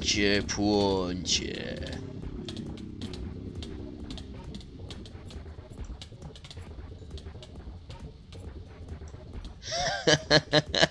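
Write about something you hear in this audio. Flames crackle and hiss steadily.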